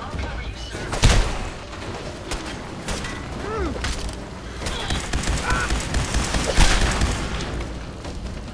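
A gun fires loud, sharp shots.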